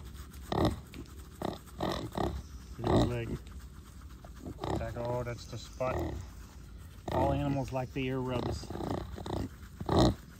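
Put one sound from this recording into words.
A gloved hand rubs and scratches a pig's bristly coat.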